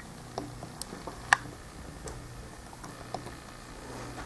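Small plastic clicks and taps come from a toy arm moving.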